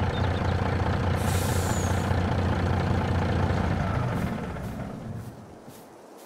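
A heavy truck engine idles with a deep rumble, then fades away.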